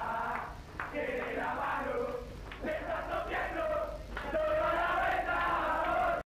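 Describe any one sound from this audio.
A crowd of young men sings and chants loudly in a small echoing room.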